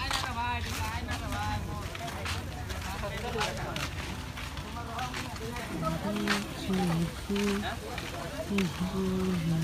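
Footsteps scuff on a dirt path.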